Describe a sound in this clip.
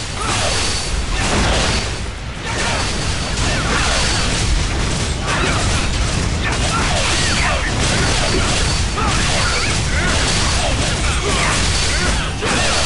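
Blades slash and clang in a fast, busy fight.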